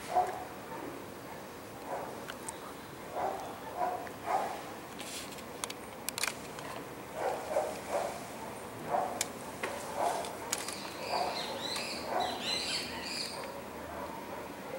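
A woman speaks slowly and clearly outdoors, with pauses.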